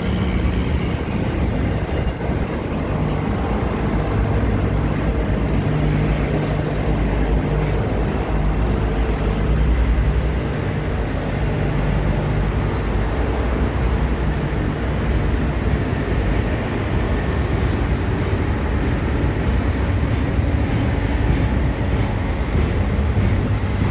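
A long freight train rumbles and clatters steadily past close by.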